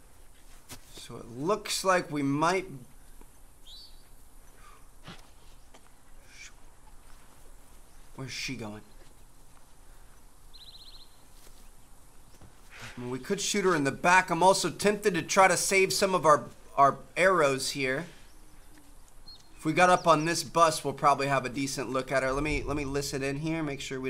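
A young man talks with animation into a close microphone, in bursts with pauses.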